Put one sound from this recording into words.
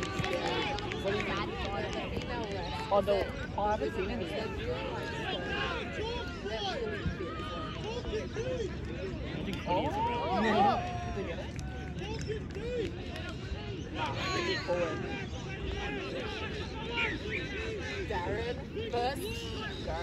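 Players shout and call out to each other across an open field.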